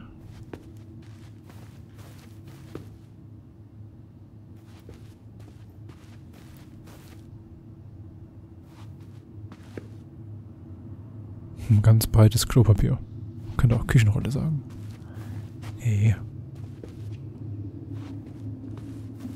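Soft footsteps pad across a floor.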